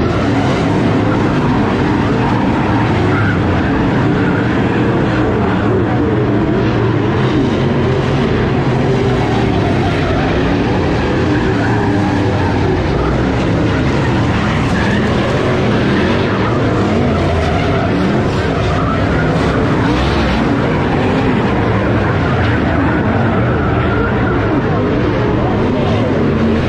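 Race car engines rise and fall in pitch as the cars speed past.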